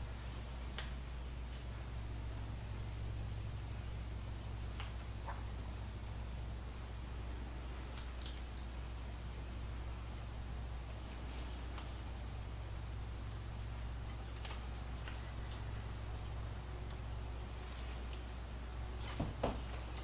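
Small pieces of food drop softly onto a salad.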